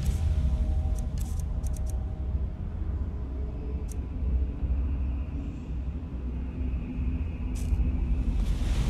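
Short interface clicks tick as items are selected in a menu.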